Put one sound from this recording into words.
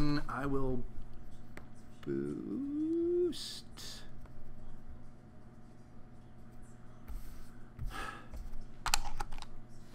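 Small plastic pieces tap softly on a tabletop.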